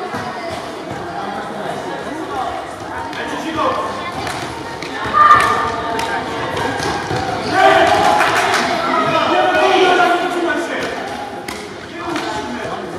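A ball thuds as it is kicked across a wooden floor.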